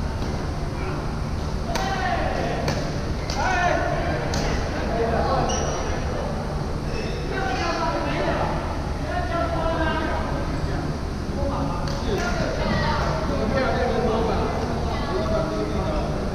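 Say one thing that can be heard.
Men call out and talk in a large echoing hall.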